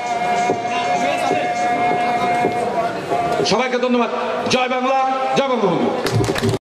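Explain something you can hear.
A man sings loudly into a microphone, heard through a loudspeaker.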